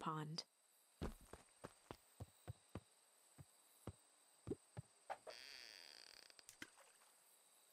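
Footsteps tap on wooden planks.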